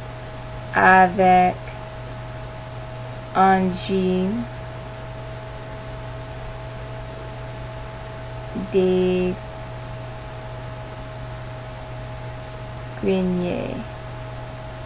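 A woman speaks slowly and clearly through a microphone, in short phrases with long pauses.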